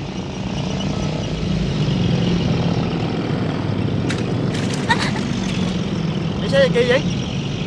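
Motorbike engines putter past on a dirt road.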